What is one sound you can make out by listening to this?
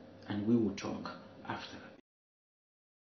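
A man talks close up.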